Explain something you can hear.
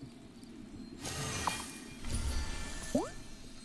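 A magical burst whooshes up from a bubbling cauldron.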